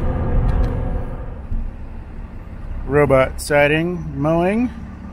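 A vehicle engine hums with a low rumble from inside the cab.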